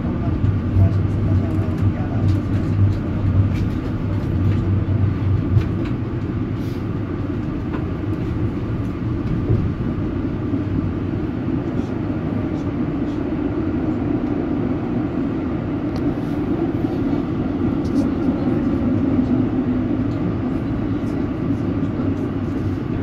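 Tram wheels click and clatter over the rails.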